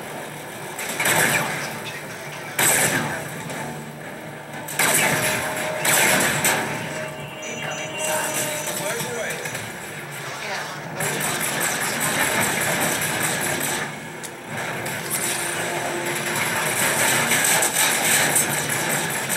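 Explosions boom from a video game through a television speaker.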